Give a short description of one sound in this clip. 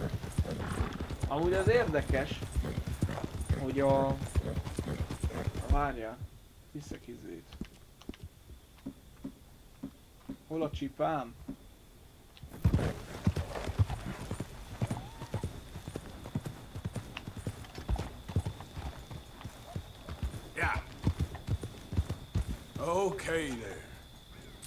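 Horse hooves thud steadily on a dirt track.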